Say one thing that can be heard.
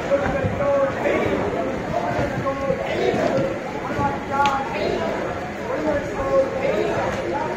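A crowd of men and women chatter loudly nearby.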